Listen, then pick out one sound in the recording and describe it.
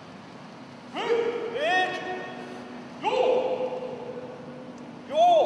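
Young men let out loud, sharp cries that echo in a large hall.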